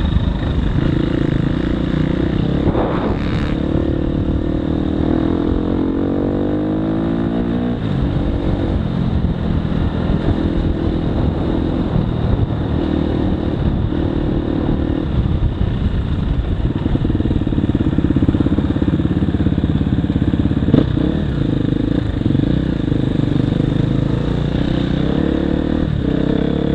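A dirt bike engine revs and roars up close.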